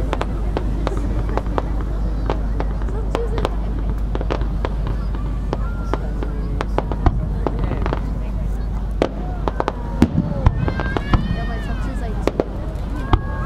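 Fireworks pop and crackle in rapid bursts.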